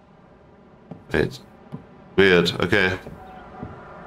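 A young man speaks in short bursts into a headset microphone.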